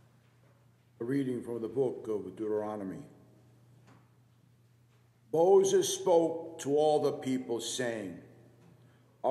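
A man chants through a microphone in a large, echoing hall.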